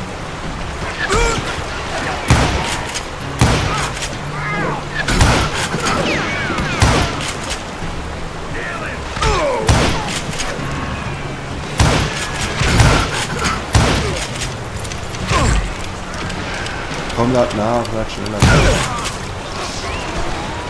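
Gunshots ring out in repeated loud bangs.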